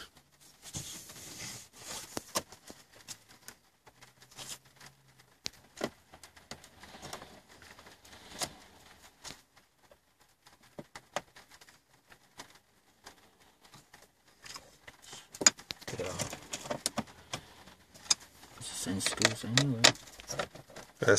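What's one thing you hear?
Plastic clicks and scrapes as small tools pry at a dashboard panel.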